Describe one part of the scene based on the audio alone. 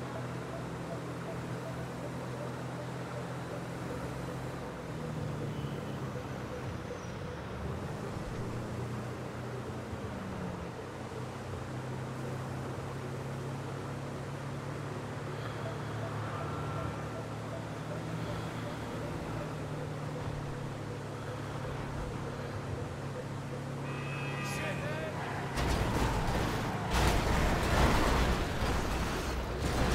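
A heavy vehicle's engine drones steadily.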